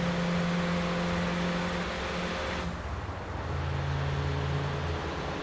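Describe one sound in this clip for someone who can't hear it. A car engine hums steadily as the car drives fast along a road.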